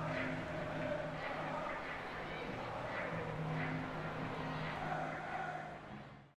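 A large stadium crowd sings and chants loudly, echoing around the stands.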